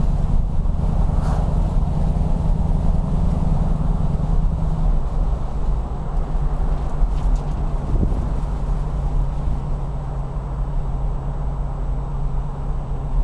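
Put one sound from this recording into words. A car engine hums steadily from inside while driving.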